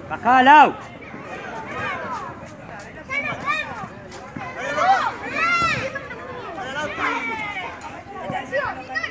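Children shout excitedly outdoors.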